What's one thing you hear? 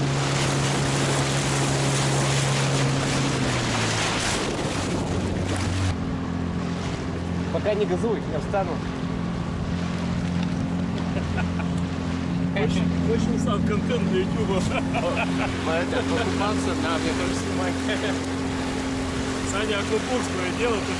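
A small 9.9 hp outboard motor drones, running at speed.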